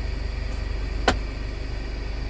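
A button on a car dashboard clicks once.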